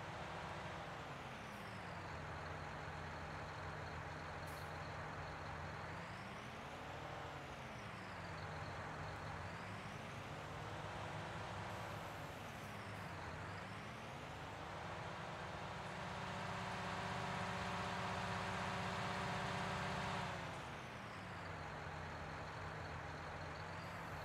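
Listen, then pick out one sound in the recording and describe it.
A tractor engine drones steadily, rising and falling in pitch as it revs up and down.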